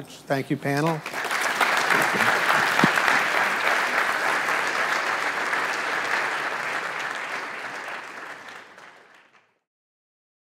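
An audience applauds and the applause fades away.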